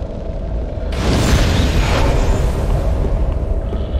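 A fiery burst roars and crackles, then fades.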